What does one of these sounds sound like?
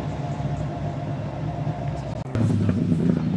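Rally car engines drone in the distance.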